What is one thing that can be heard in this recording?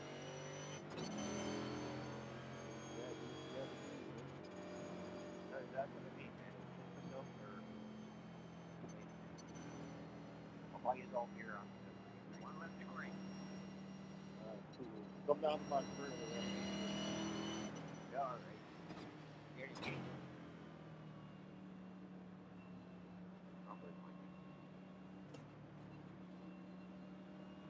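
A race car engine drones steadily, its pitch shifting as it speeds up and slows down.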